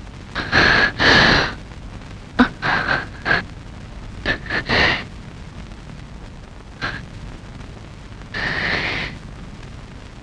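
A woman sobs and whimpers close by.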